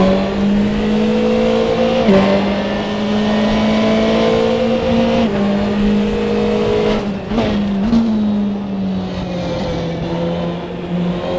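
A racing car engine roars loudly, its pitch shifting up and down through gear changes.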